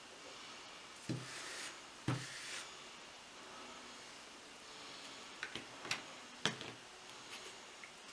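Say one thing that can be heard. Fingers tap and rub on a paper towel with soft rustles.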